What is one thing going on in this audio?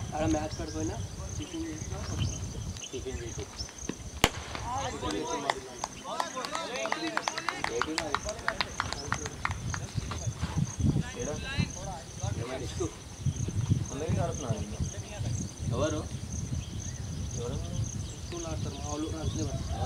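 Men call out to each other across an open field.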